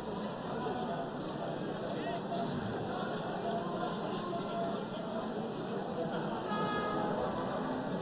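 Young men cheer and shout in celebration outdoors.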